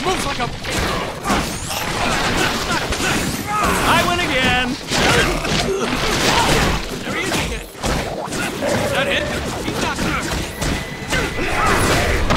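Punches and kicks land with sharp thuds in a game fight.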